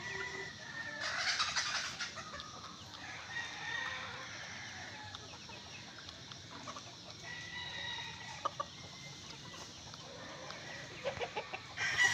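A rooster pecks at grain in a clay bowl with soft taps.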